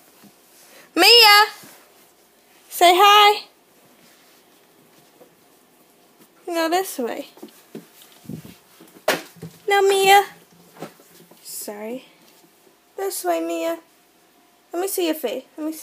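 A young child squeals and babbles in a high voice close by.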